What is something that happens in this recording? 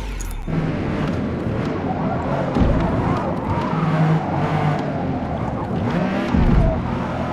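Tyres squeal as a car slides through corners.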